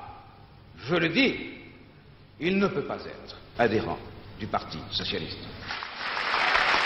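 A middle-aged man speaks with emphasis into a microphone.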